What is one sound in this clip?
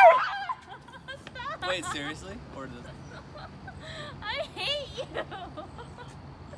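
A young man talks and laughs casually nearby.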